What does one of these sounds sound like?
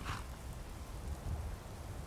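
A horse's hooves thud on the ground.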